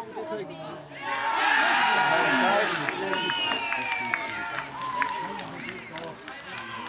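Men shout and cheer outdoors at a distance.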